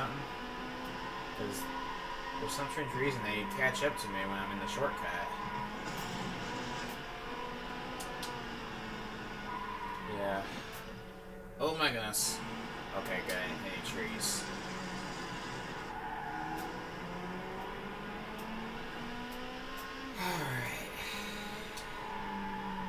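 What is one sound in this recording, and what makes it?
A racing car engine roars, rising and falling in pitch as it speeds up and slows down.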